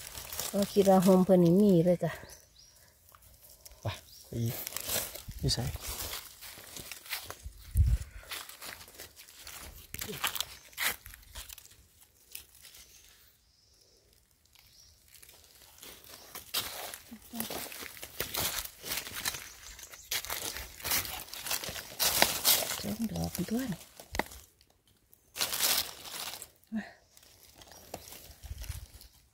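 Dry leaves rustle as hands brush through them.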